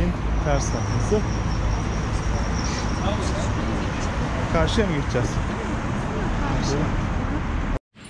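A young man talks casually close to a microphone, outdoors.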